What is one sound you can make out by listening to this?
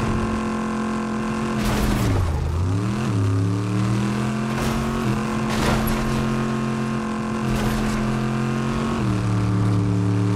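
A vehicle engine hums steadily, dipping and rising in pitch.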